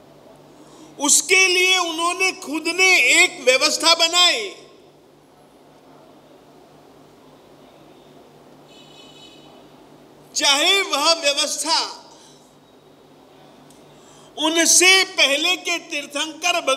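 An elderly man speaks with animation into a close microphone, in bursts with pauses.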